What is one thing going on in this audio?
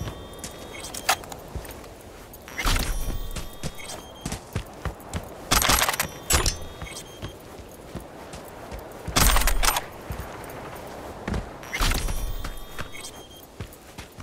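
Footsteps scuff steadily across a hard floor.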